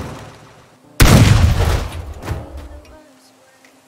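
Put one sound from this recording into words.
A shotgun blasts with a loud boom.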